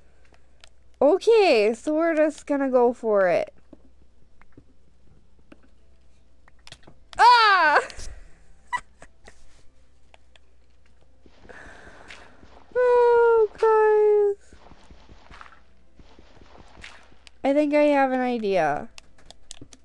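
A young woman speaks animatedly into a microphone, her voice rising and falling in sing-song bursts.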